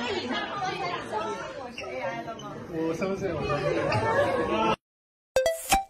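A crowd of young women chatter and talk over one another nearby.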